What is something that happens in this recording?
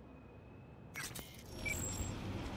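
City street noise hums.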